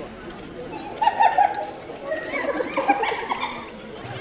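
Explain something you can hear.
Baboons grunt and bark close by.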